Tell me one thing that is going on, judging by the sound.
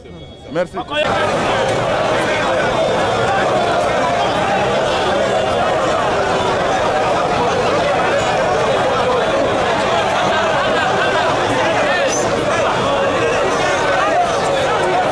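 A large crowd outdoors chatters and cheers in a steady roar.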